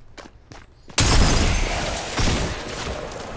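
Gunshots fire in a rapid burst close by.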